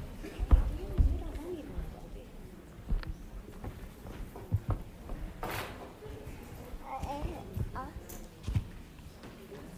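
An elderly woman speaks calmly to children in an echoing room.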